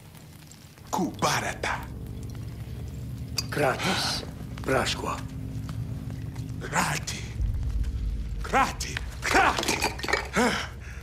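A man speaks in a low, slow, raspy voice.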